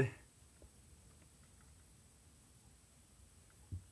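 Metal test probes tap lightly against screw terminals.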